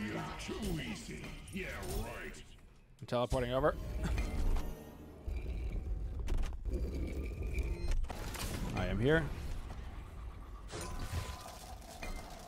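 Video game spell effects whoosh and blast.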